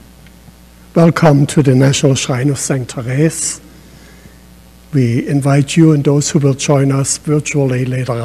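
An elderly man chants through a microphone.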